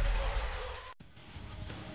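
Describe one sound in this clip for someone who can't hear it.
Ice shatters with a loud crash.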